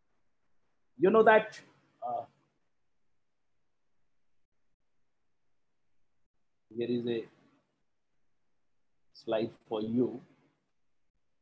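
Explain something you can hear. A middle-aged man speaks calmly in short bursts over an online call.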